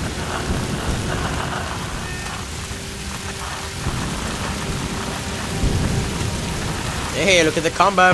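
A handheld radio hisses with static.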